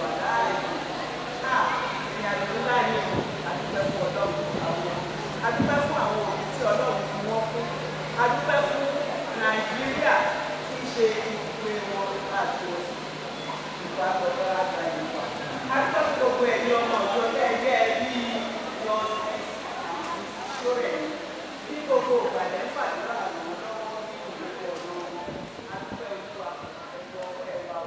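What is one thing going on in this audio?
An elderly woman speaks with animation into a microphone, close by.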